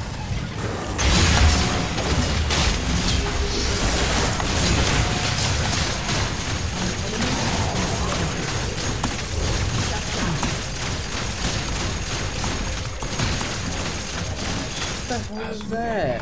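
Game combat effects clash and blast loudly.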